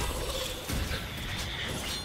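A burst of fire roars and crackles.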